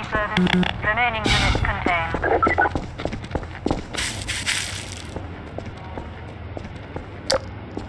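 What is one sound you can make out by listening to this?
Footsteps tread on hard pavement.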